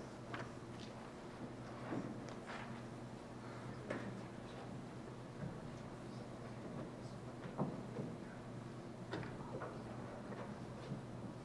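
A concert band plays softly in a large hall.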